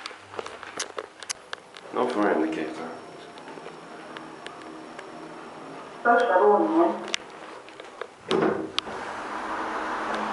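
Elevator doors slide open and shut with a whirring rumble.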